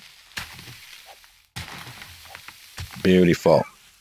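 A shovel digs into dry dirt.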